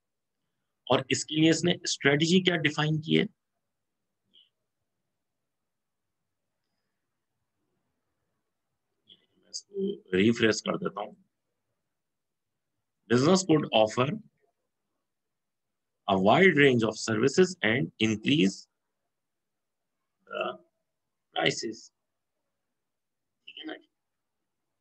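A man speaks calmly and close to a microphone, in bursts with pauses.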